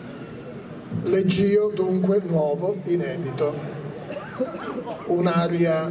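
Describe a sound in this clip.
An older man speaks calmly through a microphone and loudspeaker.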